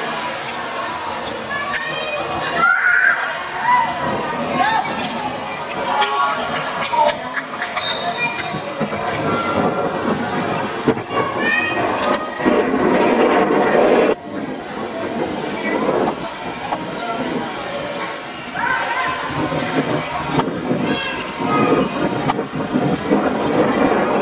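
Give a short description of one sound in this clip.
Young men shout to each other outdoors across an open field.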